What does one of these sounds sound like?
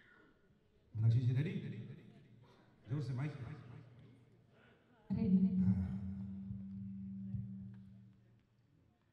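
A woman sings into a microphone through loudspeakers.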